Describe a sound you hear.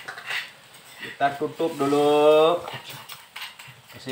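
A spatula scrapes and stirs a thick stew in a metal pan.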